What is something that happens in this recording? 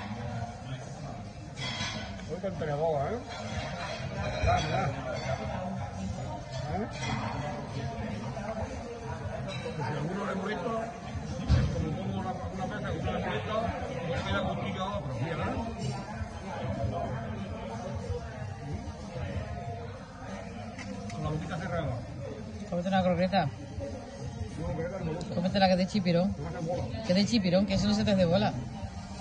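A low murmur of voices fills a busy room.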